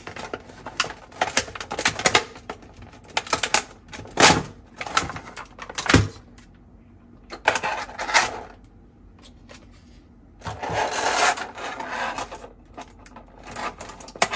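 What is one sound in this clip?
Plastic packaging crinkles and rustles as hands handle it.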